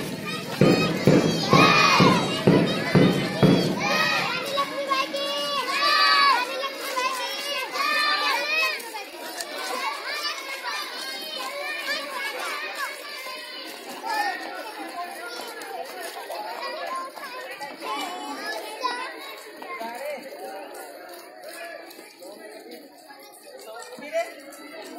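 Many young children chatter and call out nearby, outdoors.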